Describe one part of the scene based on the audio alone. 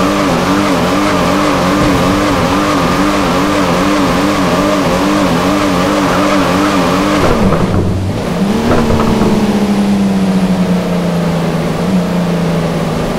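A car engine hums steadily, then revs up as the car speeds away.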